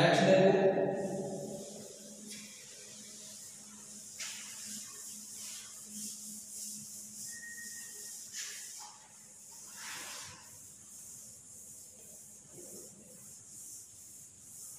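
A duster rubs across a chalkboard with a soft, steady scrubbing.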